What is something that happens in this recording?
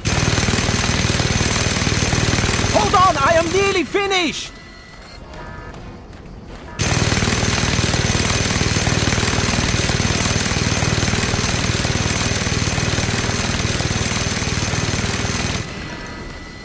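A minigun fires in a rapid, rattling stream.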